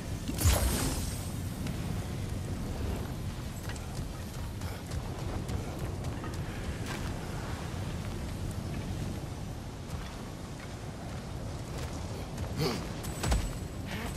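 Lava rumbles and crackles low and steady.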